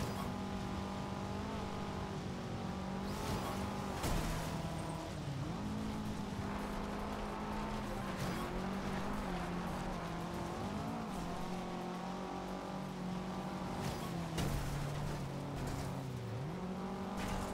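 A rally car's turbocharged flat-four engine revs hard and shifts gears.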